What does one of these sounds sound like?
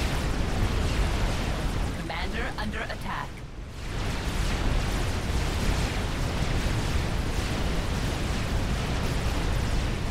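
Explosions and weapon fire rumble steadily in a battle.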